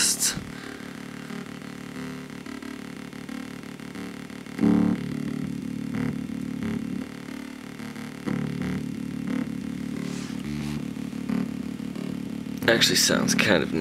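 An electronic circuit hums and buzzes with steady tones that change now and then.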